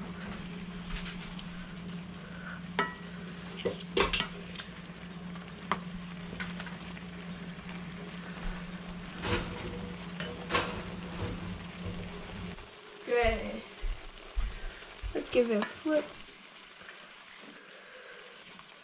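A spoon scrapes and knocks against a pan while stirring food.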